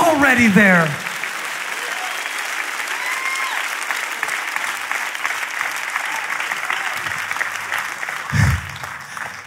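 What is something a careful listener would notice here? A large audience claps and cheers.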